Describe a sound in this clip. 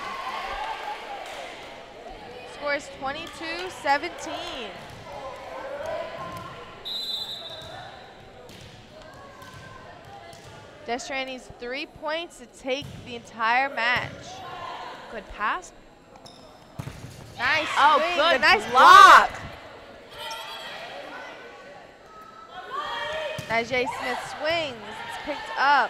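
Young women on a team call out and shout to each other.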